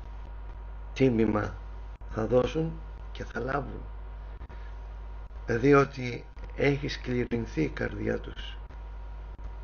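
A middle-aged man speaks calmly and slowly into a microphone, heard over an online stream.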